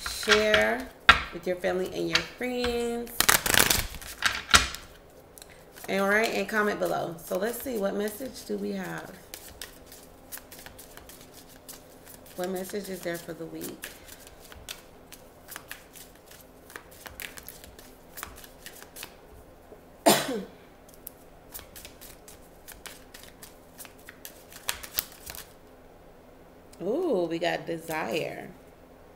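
Playing cards are shuffled and flicked.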